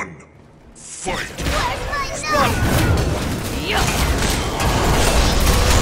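Game combat effects crash, whoosh and clatter loudly.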